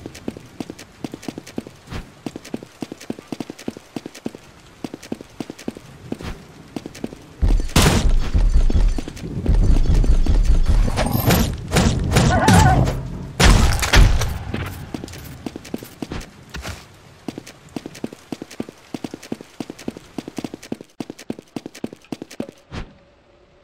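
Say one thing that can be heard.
Quick footsteps tap across a hard floor.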